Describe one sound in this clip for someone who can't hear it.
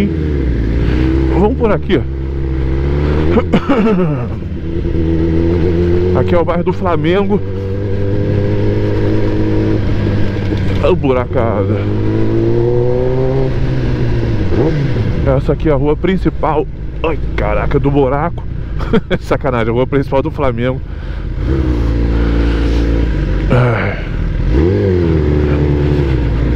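A motorcycle engine rumbles close by and revs up and down again and again.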